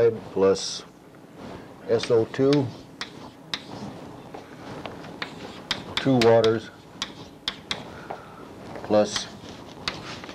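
An elderly man speaks slowly in short phrases, close by in a room.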